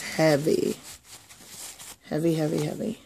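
Paper towel rustles and crinkles.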